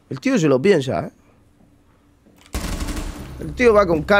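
Gunfire rattles in a quick burst.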